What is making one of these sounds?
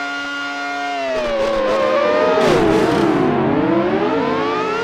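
A synthesized racing car engine drops in pitch as the car slows for a corner.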